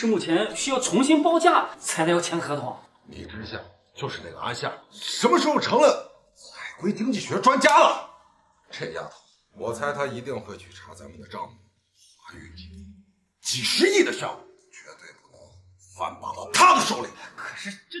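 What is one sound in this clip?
A middle-aged man talks in a complaining tone, close by.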